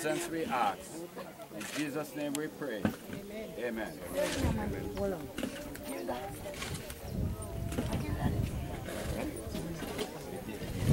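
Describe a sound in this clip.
A group of men and women sing together outdoors.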